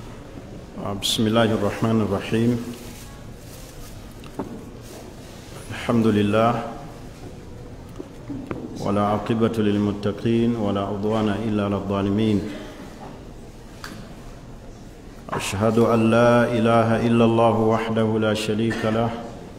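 A man speaks slowly and solemnly into a microphone, with long pauses.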